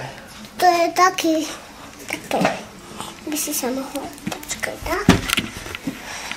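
A young girl speaks in a high, lively voice close by.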